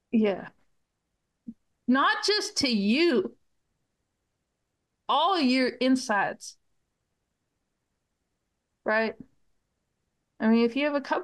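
A middle-aged woman speaks with animation in short bursts, heard through an online call.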